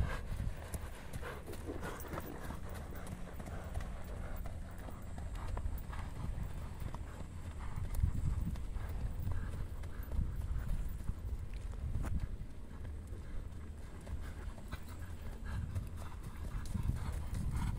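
A horse's hooves thud on dry ground at a trot.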